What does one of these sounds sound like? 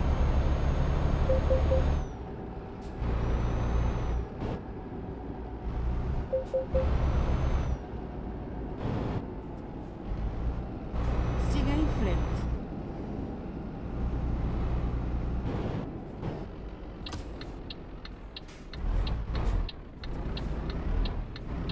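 A truck engine rumbles, swelling and easing as it speeds up and slows.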